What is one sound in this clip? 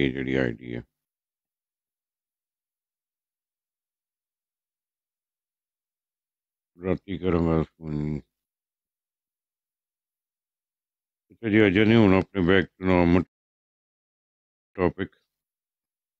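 A middle-aged man speaks in short bursts through a phone microphone.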